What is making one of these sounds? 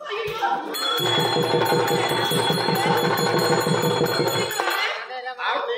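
A harmonium plays a lively tune with a fast beat.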